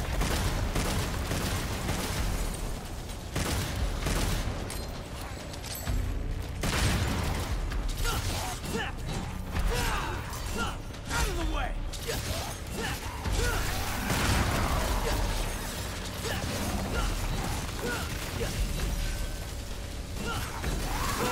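Swords clash and slash in rapid strikes.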